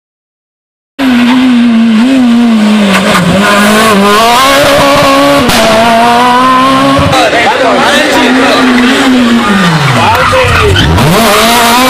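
A rally car engine roars loudly, revving up and down as it speeds past.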